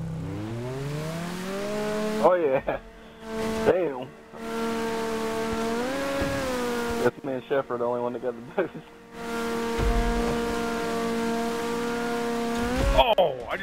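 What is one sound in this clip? Water splashes and sprays behind a speeding boat.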